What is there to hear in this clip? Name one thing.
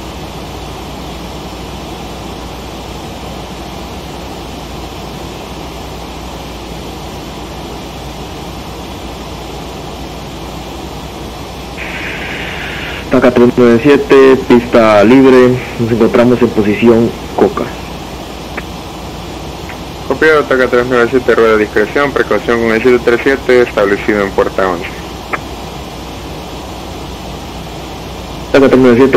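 A jet engine hums steadily in the cockpit.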